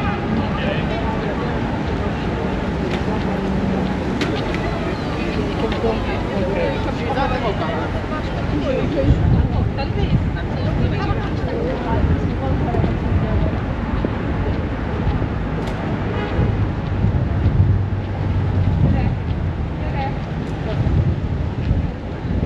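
A crowd of people talks and murmurs outdoors.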